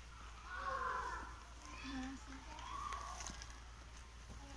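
Young girls talk quietly nearby.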